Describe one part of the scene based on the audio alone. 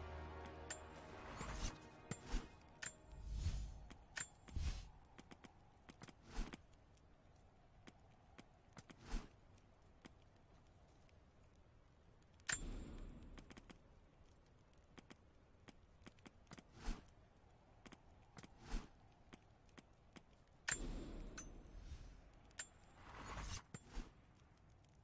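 Short game menu clicks and swooshes sound again and again.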